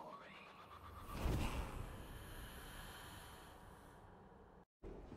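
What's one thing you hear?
A burst of smoke whooshes with a deep rumble.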